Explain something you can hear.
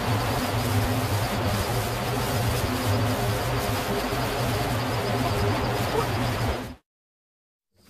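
An electric fan hums steadily and loudly.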